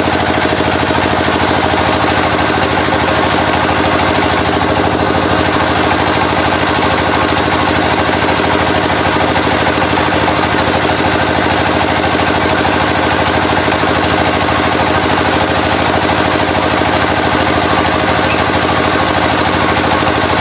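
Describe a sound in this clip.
A diesel engine runs loudly and steadily, chugging fast.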